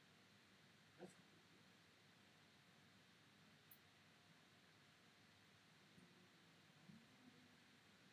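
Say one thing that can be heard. Soft game chimes and whooshes sound as cards are played.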